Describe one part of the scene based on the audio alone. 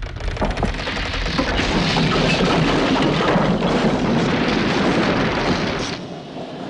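Rubble rumbles and clatters down a chute close by.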